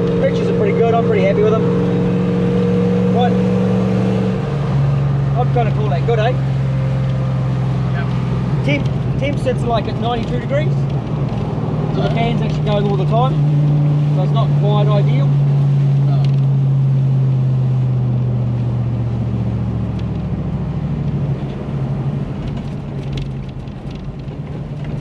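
A vehicle engine drones steadily from inside the cab.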